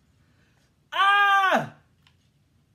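A young man laughs out loud.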